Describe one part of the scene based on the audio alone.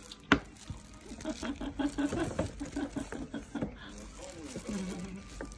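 A plastic bag crinkles close by.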